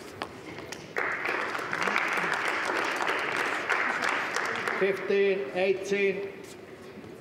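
A crowd applauds loudly in a large echoing hall.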